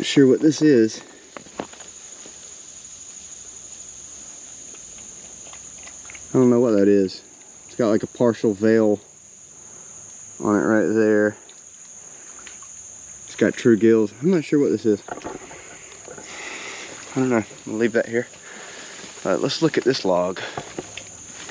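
A man talks calmly and close by, in short bursts.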